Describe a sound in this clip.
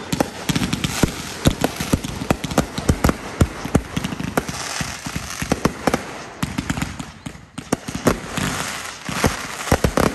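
Fireworks crackle and fizz as they burst.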